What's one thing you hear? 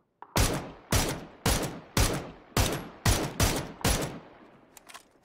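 Rifle shots fire in rapid succession, each ringing out loudly.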